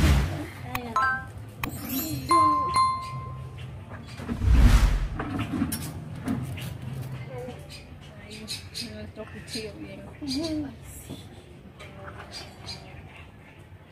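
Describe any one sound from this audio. Children and women talk and chatter close by.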